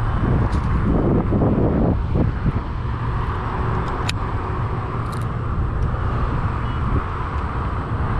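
Wind blusters noisily across the microphone outdoors.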